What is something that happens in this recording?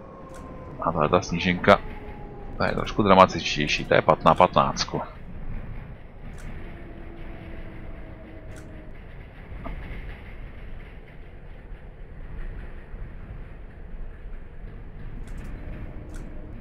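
A tram hums and rumbles steadily along its rails.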